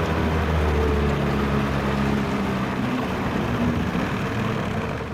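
A motor launch's engine drones as the boat cruises.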